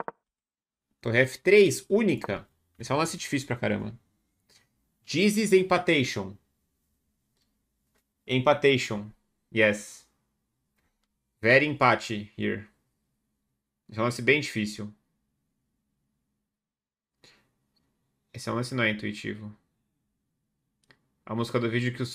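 A man speaks calmly into a close microphone, in bursts with pauses.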